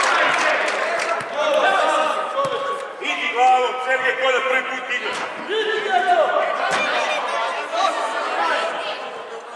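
Young players shout and call out to each other across a large echoing hall.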